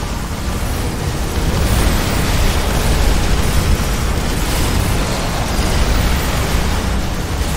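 Laser beams hum and crackle steadily.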